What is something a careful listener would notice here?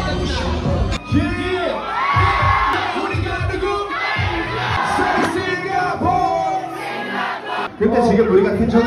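A young man raps loudly into a microphone over loudspeakers.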